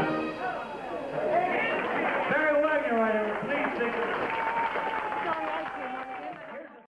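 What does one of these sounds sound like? A big band of brass and saxophones plays a lively tune.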